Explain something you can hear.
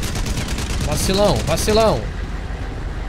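A young man exclaims loudly into a microphone.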